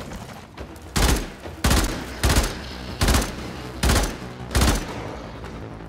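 A gun fires a series of loud, evenly spaced shots.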